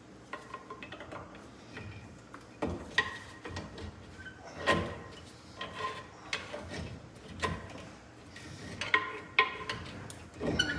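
A metal tool clinks and scrapes against metal parts.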